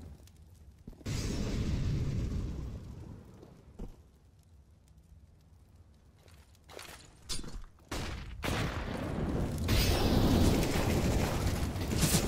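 A smoke grenade hisses loudly.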